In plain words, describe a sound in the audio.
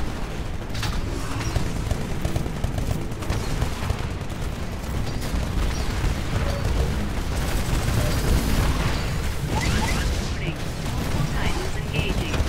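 A heavy automatic gun fires rapid bursts.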